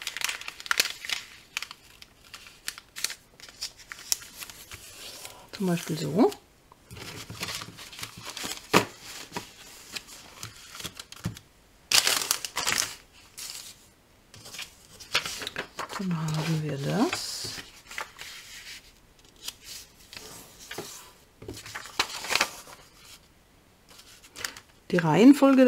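Paper rustles and crinkles as hands smooth and fold it.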